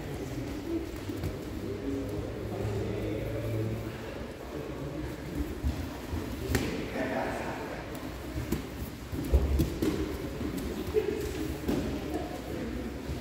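Several men murmur in the distance in a large echoing hall.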